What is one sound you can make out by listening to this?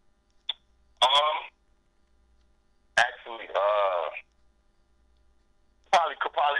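A man speaks loudly with animation through a microphone, in short bursts.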